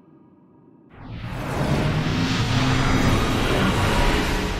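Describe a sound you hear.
A magical puff of smoke bursts and rushes.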